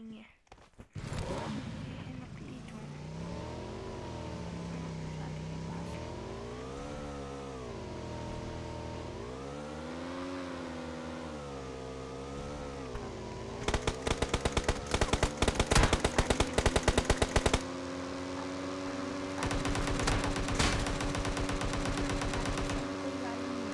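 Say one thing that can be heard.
A motorbike engine revs up and down as the bike rides along.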